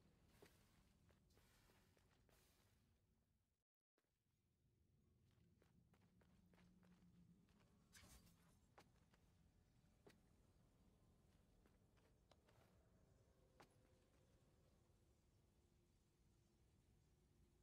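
Heavy spiked metal balls clank and thud as they swing.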